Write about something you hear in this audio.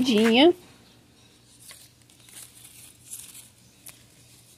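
Leaves rustle softly as a hand brushes them.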